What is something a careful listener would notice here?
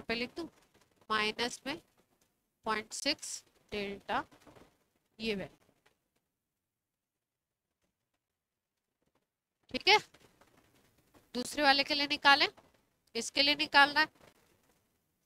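A woman speaks calmly through a clip-on microphone, explaining in pauses.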